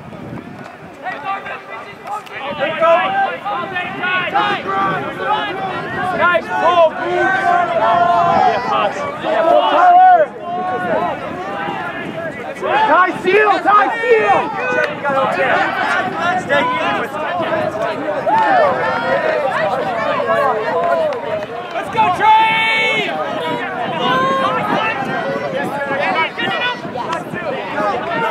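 A crowd of young men and women shout and cheer across an open field.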